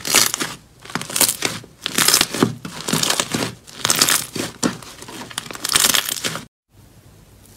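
Sticky slime squelches and pops as hands squeeze and knead it.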